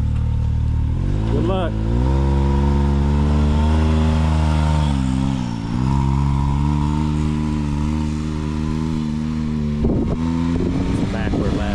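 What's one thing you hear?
A buggy engine revs up and roars as the buggy pulls away.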